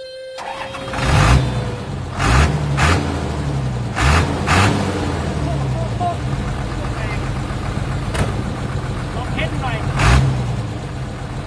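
A diesel truck engine revs loudly several times.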